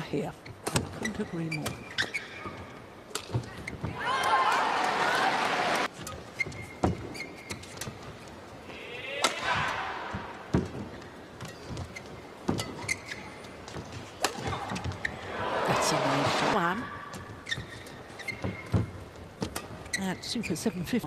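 Sports shoes squeak on the court.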